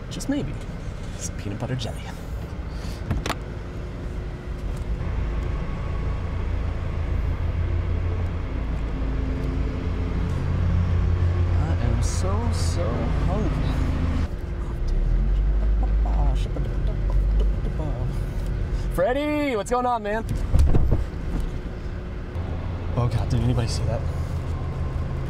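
A car drives along with a low road rumble.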